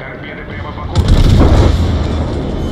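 A large explosion booms and splashes.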